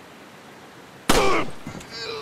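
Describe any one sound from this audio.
A pistol fires a single loud shot.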